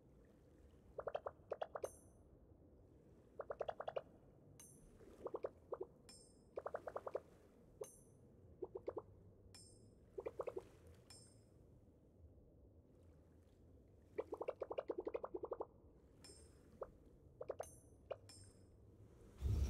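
Quick chirpy blips sound in bursts as dialogue text types out.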